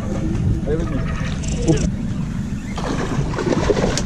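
A man talks with excitement nearby.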